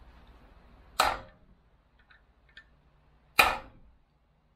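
A hammer taps sharply on a metal punch.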